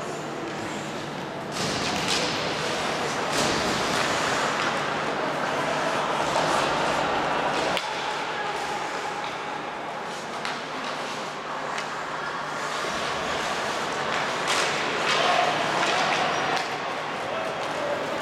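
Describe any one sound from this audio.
Skates scrape and hiss across ice in a large echoing arena.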